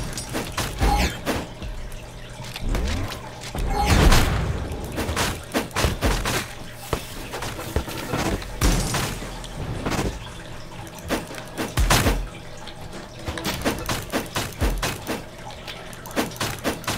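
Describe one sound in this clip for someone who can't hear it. Sword slashes whoosh and strike in quick bursts.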